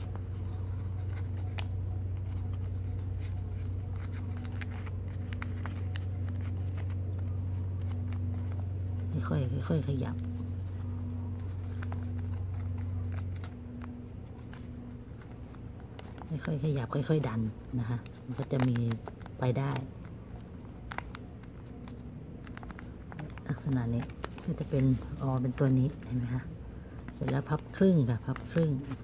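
Thin paper rustles and creases as hands fold it.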